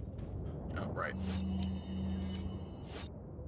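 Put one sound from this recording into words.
A menu beeps and chimes as it opens.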